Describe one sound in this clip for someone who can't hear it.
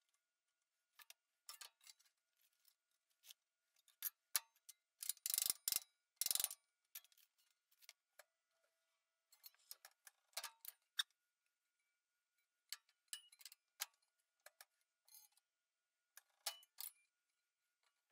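Thin sheet metal taps and rattles as it is handled and bent.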